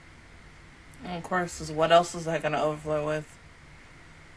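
A young woman speaks close into a microphone.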